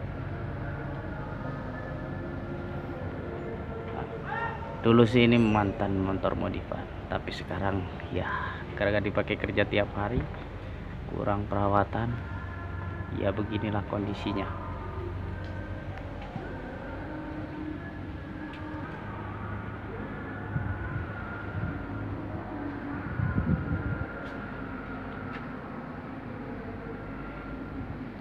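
A motorcycle engine idles steadily nearby.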